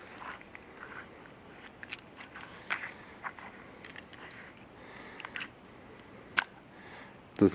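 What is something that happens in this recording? Small plastic and metal parts click and rattle as they are handled.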